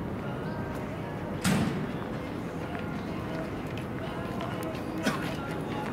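A jogger's footsteps patter on pavement, coming closer.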